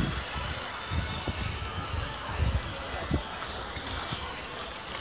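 Footsteps patter on paved ground outdoors.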